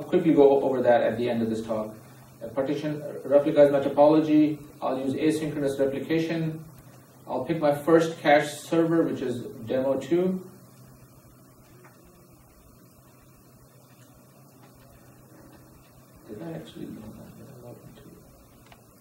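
A man speaks steadily into a microphone, explaining in a calm lecturing tone.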